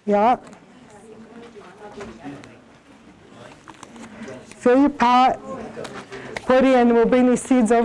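A woman speaks up loudly close by.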